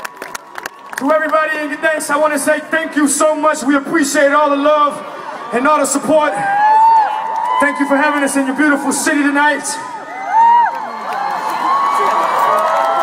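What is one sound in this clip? A man sings into a microphone over loud speakers in a large open venue.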